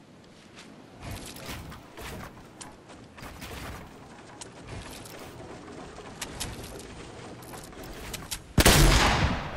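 Building pieces snap into place with quick clicks and thuds.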